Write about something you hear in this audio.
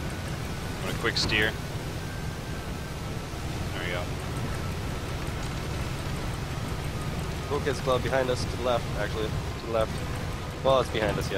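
A young man speaks casually and close to a microphone.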